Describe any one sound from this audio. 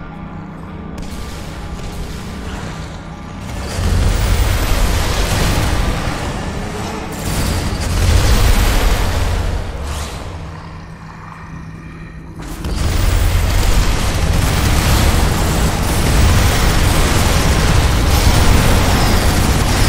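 Explosions boom.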